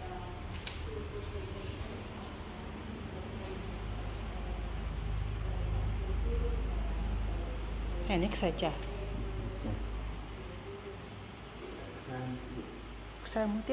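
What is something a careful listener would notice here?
A thick padded cloth rustles and swishes as it is dragged and spread out on a hard floor.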